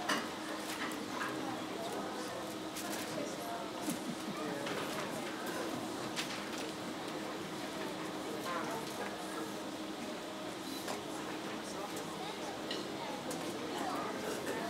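An audience murmurs and chatters nearby.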